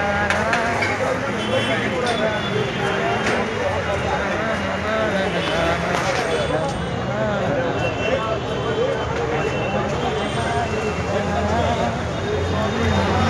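A crowd chatters all around.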